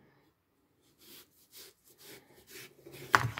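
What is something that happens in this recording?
A knife slices through a watermelon's rind with soft crunching strokes.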